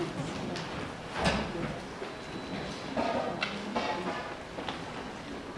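An audience murmurs and shifts in a large hall.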